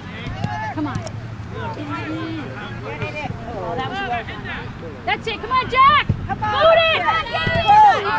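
A soccer ball is kicked with a thump.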